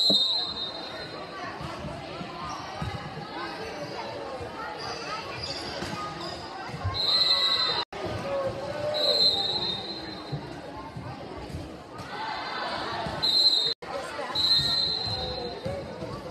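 A referee's whistle blows several times.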